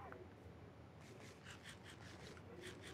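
Quick footsteps crunch on grass.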